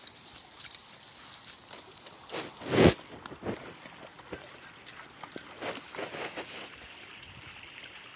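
Dogs splash through a shallow stream outdoors.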